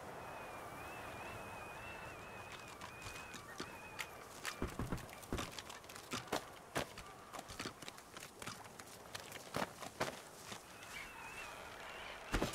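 Footsteps tread on stone and wooden planks.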